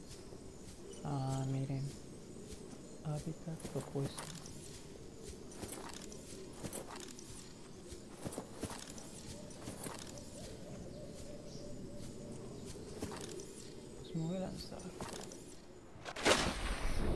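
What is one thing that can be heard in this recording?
Footsteps thud on soft ground.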